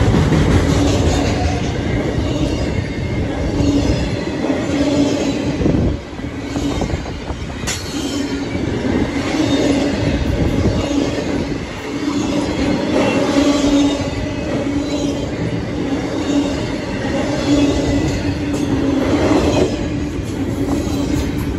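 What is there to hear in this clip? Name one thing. A freight train rumbles past close by, its wheels clattering over the rails.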